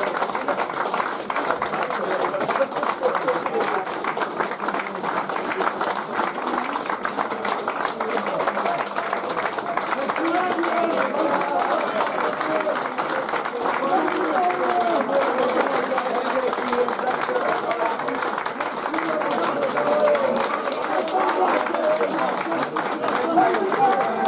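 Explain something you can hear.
A crowd of spectators claps steadily outdoors.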